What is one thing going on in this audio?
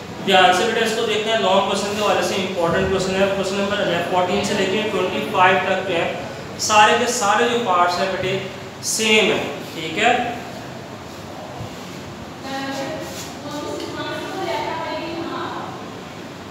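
A man speaks clearly to a room, close by.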